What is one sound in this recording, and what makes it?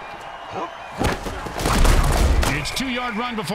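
Football players crash together in a heavy tackle.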